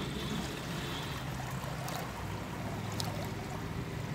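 Water pours from a plastic tub.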